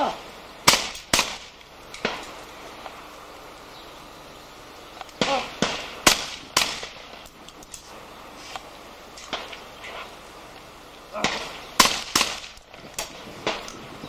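Shotguns fire in sharp, echoing bangs outdoors, some close and some farther off.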